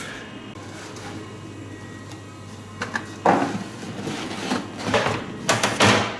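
Cardboard boxes rustle and thump.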